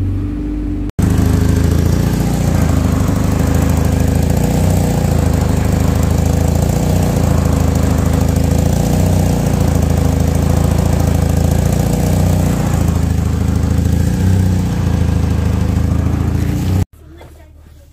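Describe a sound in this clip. An engine idles with a loud, steady rumble close by.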